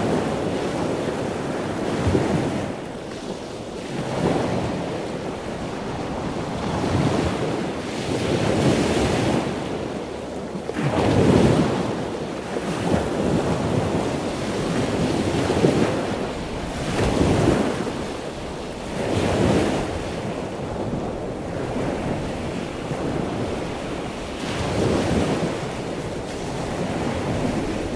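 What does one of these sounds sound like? Water swirls and rushes in muffled swells, heard from underwater.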